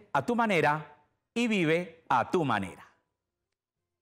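A man speaks cheerfully and close to a microphone.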